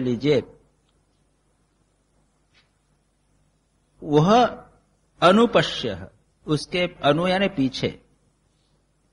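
An elderly man chants and speaks calmly into a microphone, with pauses.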